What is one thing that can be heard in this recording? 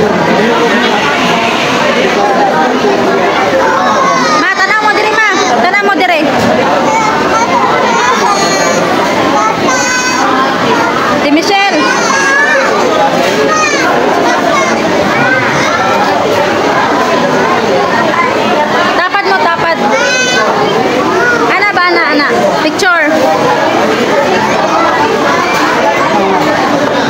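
A crowd chatters all around in an echoing room.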